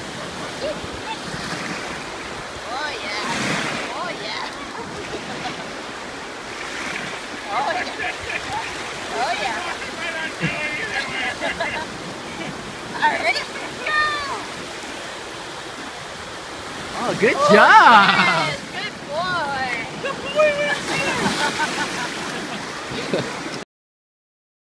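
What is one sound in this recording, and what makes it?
Water splashes around a small dog's legs.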